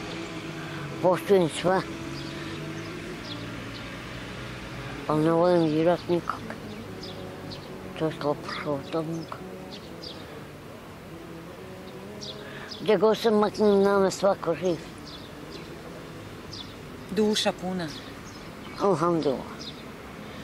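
An elderly man speaks calmly and close by, in short bursts.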